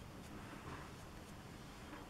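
Paper tissue crinkles softly.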